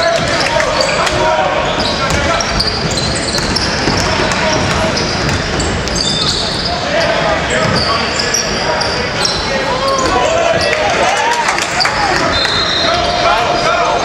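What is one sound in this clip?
A crowd of spectators murmurs and calls out.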